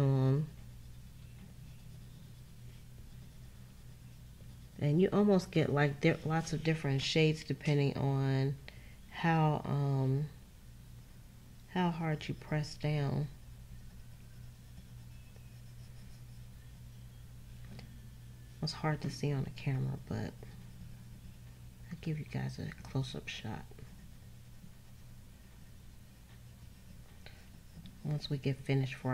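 A coloured pencil scratches softly on paper.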